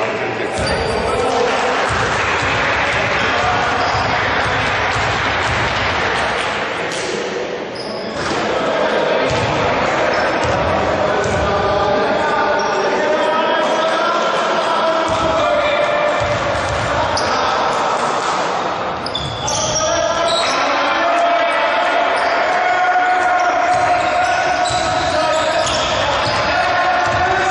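Players and spectators call out and chatter, echoing around the hall.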